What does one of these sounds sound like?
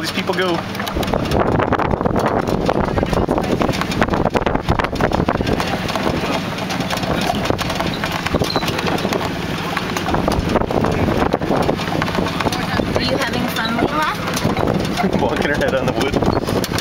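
A wagon rumbles and rattles along a rough dirt road.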